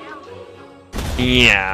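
A cartoonish explosion booms.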